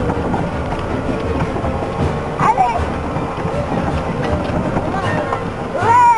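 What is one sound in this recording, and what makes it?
A small electric cart hums as it drives over grass.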